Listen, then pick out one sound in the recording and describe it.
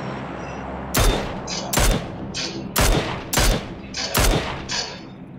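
A rifle fires several loud, sharp shots at a steady pace.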